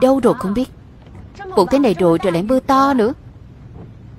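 A young woman speaks calmly inside a car.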